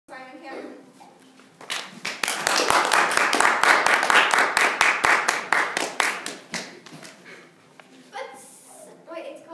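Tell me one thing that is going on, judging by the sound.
A young girl speaks calmly into a microphone.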